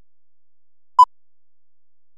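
A single short electronic beep sounds.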